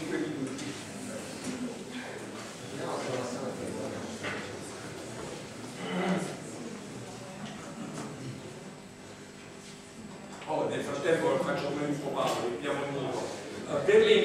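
A young man talks to an audience.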